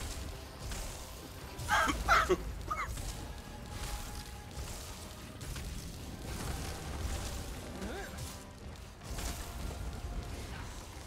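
Fiery magic blasts whoosh and crackle during a fight.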